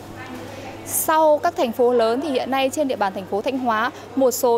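A young woman speaks clearly and briskly into a microphone close by.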